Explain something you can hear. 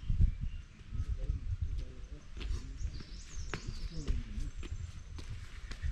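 A young man talks casually as he approaches.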